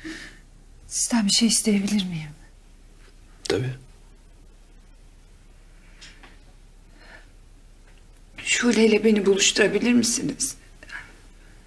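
A young woman speaks quietly and hesitantly up close.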